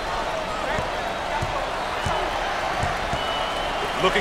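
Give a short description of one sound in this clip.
A basketball bounces on a hardwood floor in a steady dribble.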